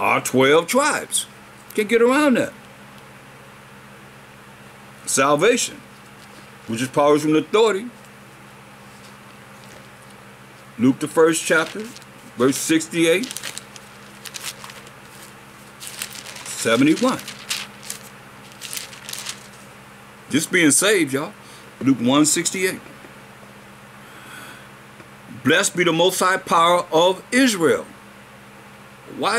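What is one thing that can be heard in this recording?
An elderly man speaks calmly and close up, in short phrases with pauses.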